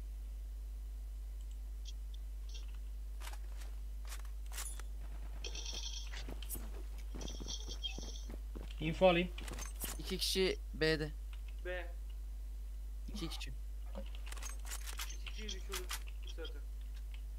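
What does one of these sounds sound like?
Gunshots ring out from a rifle.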